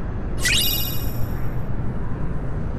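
A bright chime rings out and fades.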